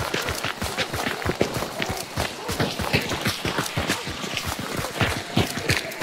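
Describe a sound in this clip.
Footsteps run quickly over dry ground and crunching leaves.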